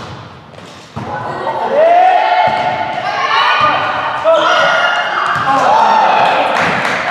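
Young girls shout and call out to each other on court.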